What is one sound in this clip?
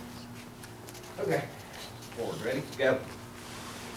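An older man speaks in a large echoing hall.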